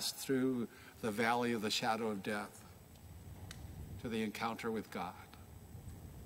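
A middle-aged man speaks calmly into a microphone in a reverberant hall.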